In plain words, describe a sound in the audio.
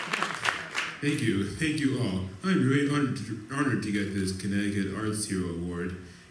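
A young man speaks into a microphone in a large hall.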